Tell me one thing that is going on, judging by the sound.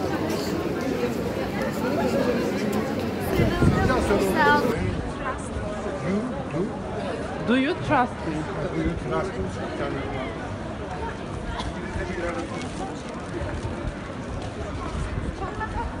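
A crowd of people chatters outdoors on a busy street.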